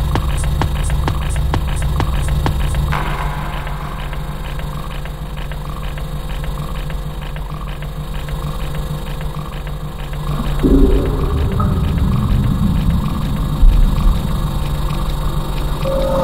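Loud electronic dance music with a pounding beat plays over big speakers.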